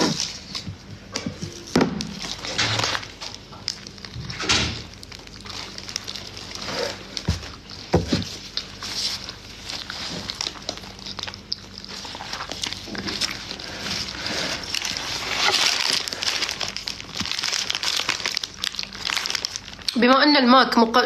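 A young woman chews and bites into food.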